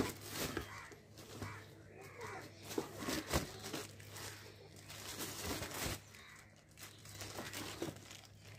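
A plastic package crinkles and rustles in hands.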